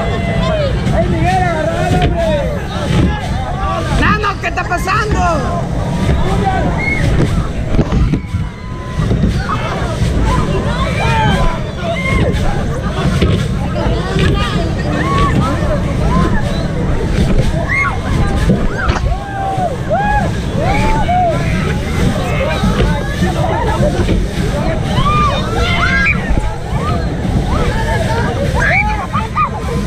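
Young people scream and shout with excitement.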